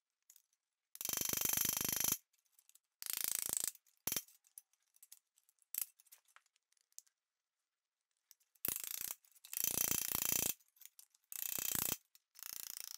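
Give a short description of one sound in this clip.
A hammer strikes sheet metal in quick bursts of ringing blows.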